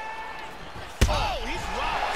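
A punch lands with a sharp thud.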